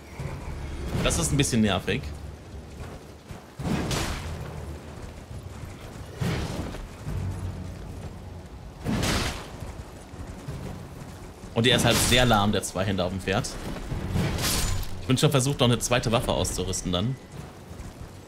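A sword swishes and clangs against bony enemies.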